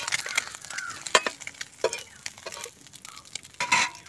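A metal spatula scrapes across a flat pan.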